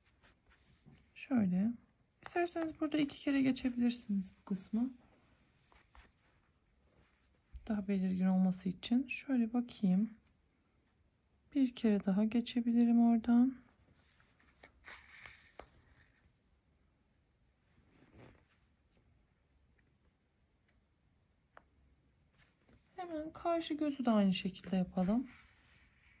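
Thread rustles softly as it is pulled through a crocheted toy.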